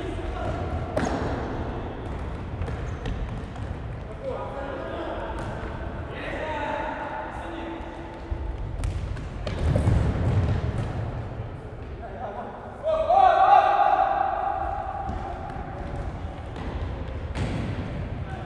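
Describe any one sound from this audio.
A ball is kicked with sharp thuds that echo through a large hall.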